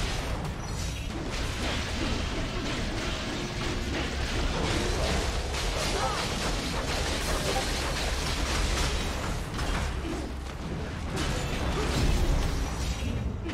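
Water splashes heavily.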